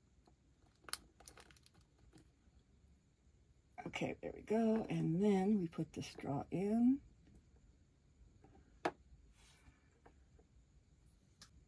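Small plastic pieces click softly as they are handled.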